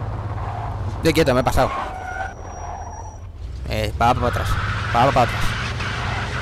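Car tyres screech during sharp turns.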